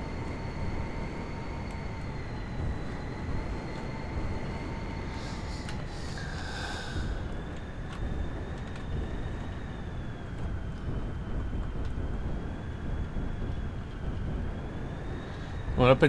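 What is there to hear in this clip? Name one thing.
A jet engine whines steadily.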